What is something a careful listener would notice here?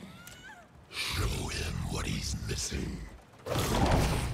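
A man speaks in a deep, growling voice.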